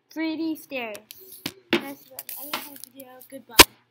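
A toy drawing board rattles and thumps as it is shaken.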